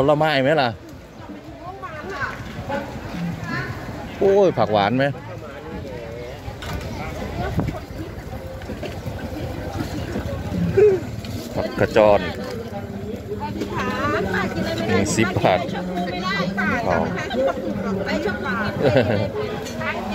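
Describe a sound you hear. Adult men and women talk casually close by.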